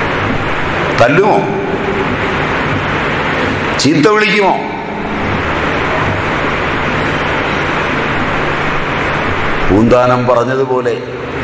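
A middle-aged man speaks calmly in short phrases nearby.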